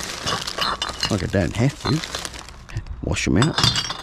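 Glass bottles clink and rattle against each other.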